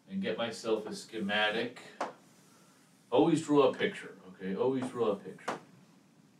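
A man speaks calmly, as if explaining, close by.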